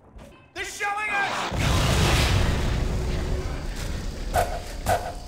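A young man speaks close into a microphone with animation.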